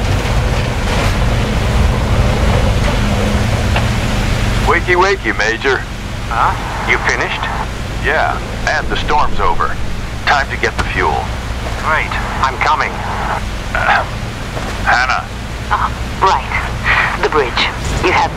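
Water splashes under a tank's tracks.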